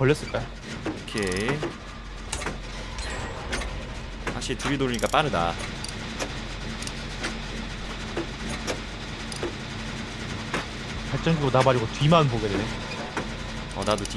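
A machine engine rattles and clanks steadily.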